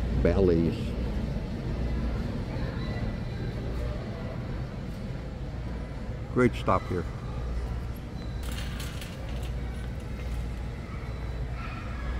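Distant visitors murmur in a large echoing hall.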